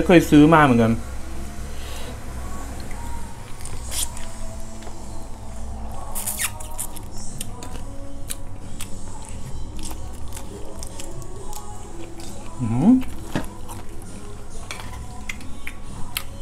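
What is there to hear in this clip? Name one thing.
A young man chews and smacks his lips loudly while eating.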